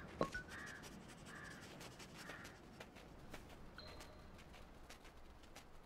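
A small animal's paws patter quickly over rough ground.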